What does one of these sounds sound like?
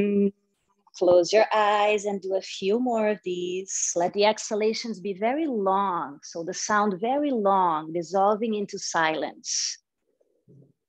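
A woman speaks calmly through a microphone, as on an online call.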